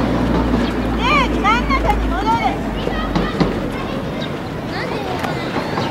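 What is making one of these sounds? Children shout and call out loudly across an open field outdoors.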